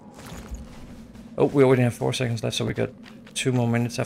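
Footsteps thud softly on damp ground.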